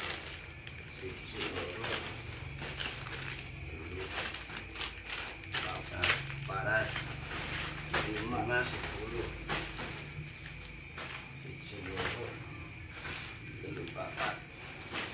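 Plastic bags crinkle and rustle as they are handled.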